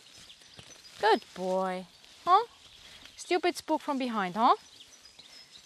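A young woman calls out to a horse in drawn-out tones outdoors.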